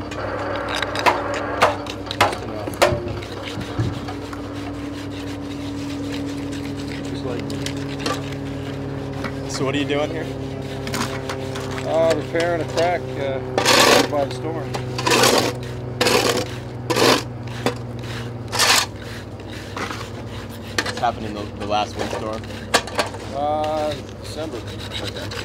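Metal hand tools scrape and tap against concrete.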